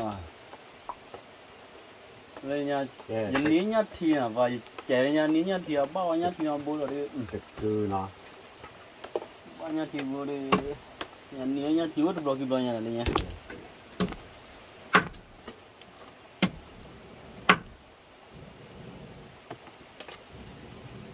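A knife chops sharply against a wooden board.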